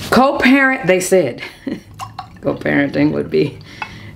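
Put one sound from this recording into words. Wine pours and gurgles into a glass.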